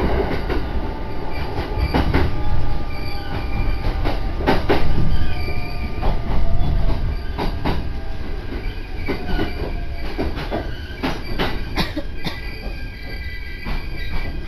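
A car engine hums and tyres rumble on the road while driving.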